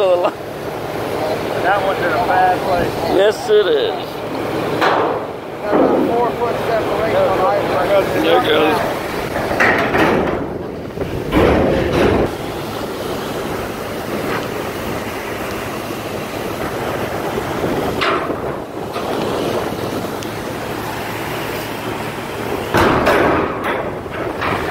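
A heavy engine rumbles steadily nearby.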